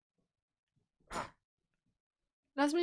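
A young woman speaks loudly and with animation close to a microphone.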